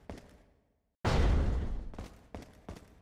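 A heavy door bangs open.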